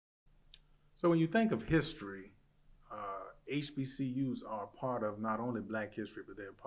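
A man speaks calmly and expressively close to a microphone.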